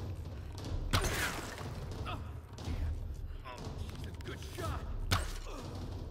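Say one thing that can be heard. A gunshot sounds sharply in a video game.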